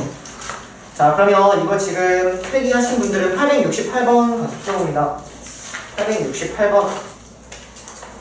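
A young man speaks calmly and close by, his voice slightly muffled.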